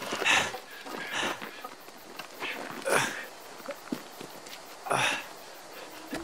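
An axe strikes wood with sharp thuds.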